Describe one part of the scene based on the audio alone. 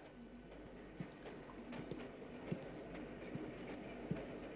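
Train wheels knock rhythmically over rail joints.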